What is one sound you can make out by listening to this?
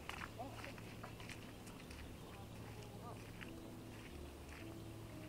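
Footsteps swish softly through grass.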